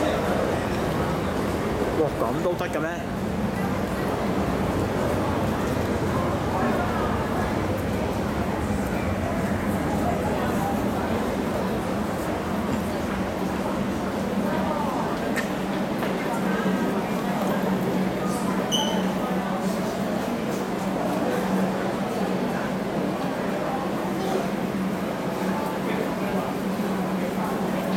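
A crowd of people chatter in a large echoing space.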